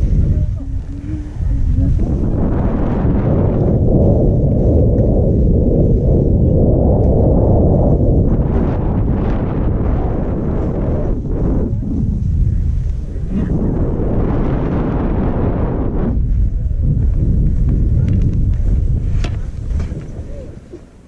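Skis scrape and hiss over snow.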